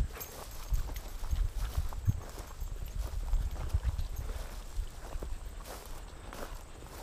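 A dog rustles through tall grass.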